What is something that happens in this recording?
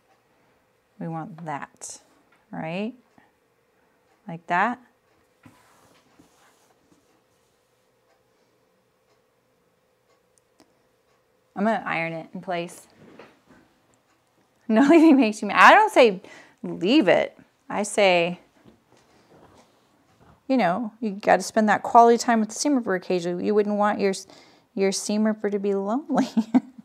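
An older woman talks calmly into a microphone, with pauses.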